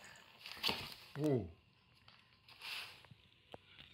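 A cardboard box scrapes across a straw mat.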